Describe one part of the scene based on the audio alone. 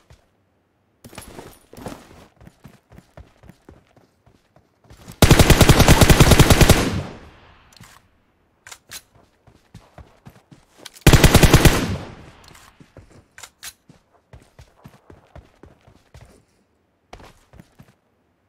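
Footsteps crunch over dry ground.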